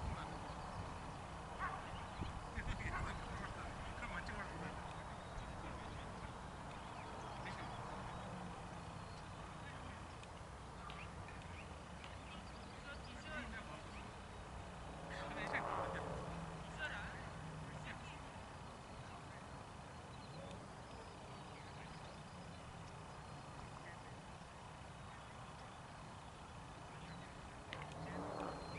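Men talk and call out to each other at a distance outdoors.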